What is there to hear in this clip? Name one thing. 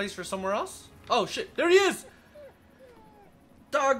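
A dog whimpers nearby.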